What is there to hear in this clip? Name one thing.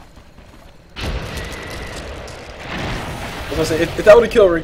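Magic spells crackle and whoosh in a fight.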